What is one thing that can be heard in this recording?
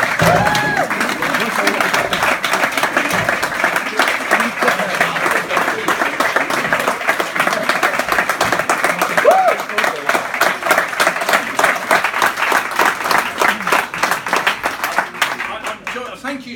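A crowd claps and cheers loudly in an echoing room.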